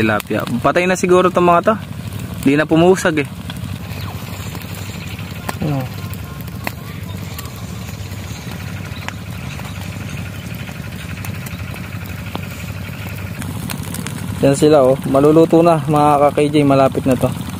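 A small fire crackles in dry straw.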